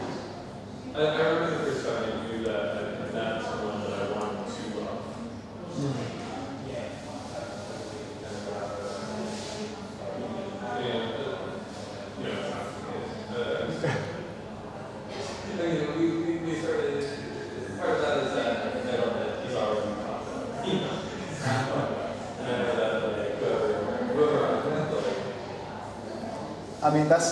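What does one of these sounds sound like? A man talks calmly on a phone close by.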